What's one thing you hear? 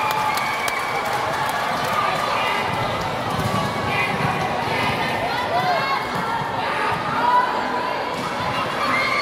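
Young girls shout to one another during play.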